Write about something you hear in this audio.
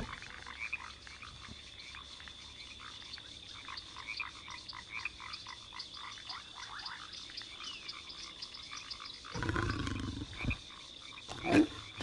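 A small cartoon creature chirps and squeaks rapidly.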